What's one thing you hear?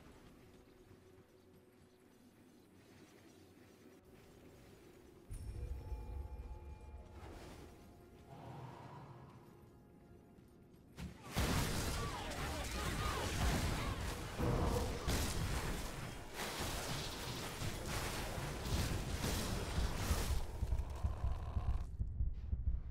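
Magic spells crackle and boom in a game battle.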